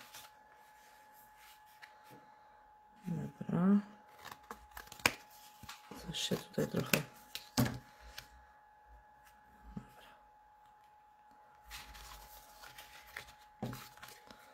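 Paper rustles as it is handled and folded.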